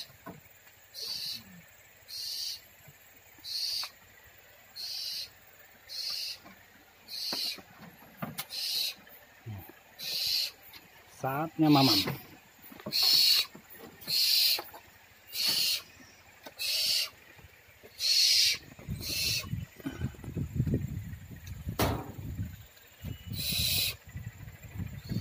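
Young owls hiss in loud, rasping bursts again and again at a steady pace.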